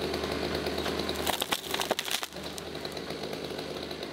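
A tree trunk creaks and cracks as it is pushed over.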